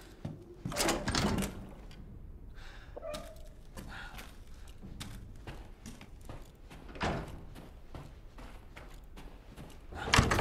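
Slow footsteps tread across a floor indoors.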